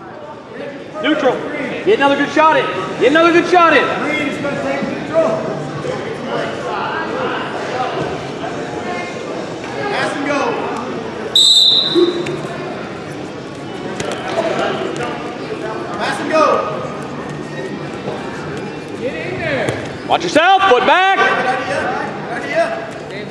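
Spectators shout and cheer in a large echoing gym.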